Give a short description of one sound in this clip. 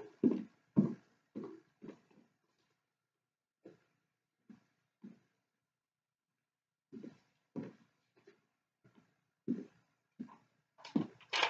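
Footsteps thud on a wooden floor in a large echoing hall.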